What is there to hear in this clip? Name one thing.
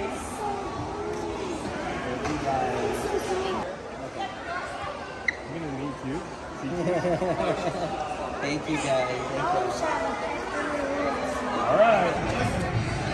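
Children chatter and exclaim excitedly nearby.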